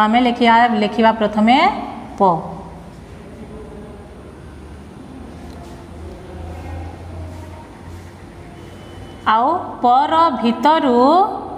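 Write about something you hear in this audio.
A woman speaks clearly and slowly nearby.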